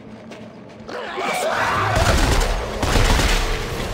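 A gun fires in loud, rough bursts.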